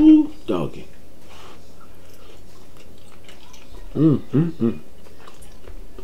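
A man chews food noisily up close.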